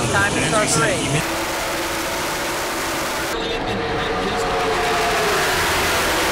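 Race cars roar past loudly.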